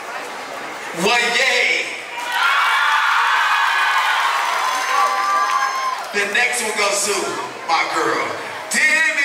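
A group of young girls chants loudly together.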